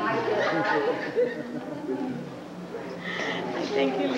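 A young woman speaks playfully to a small child.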